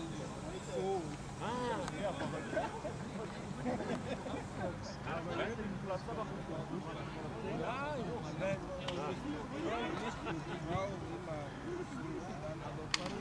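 Young men shout and call to each other across an open field outdoors.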